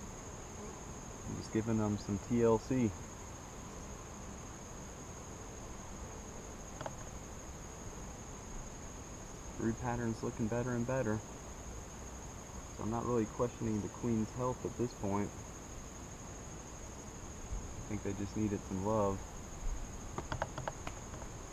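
Bees buzz around an open hive.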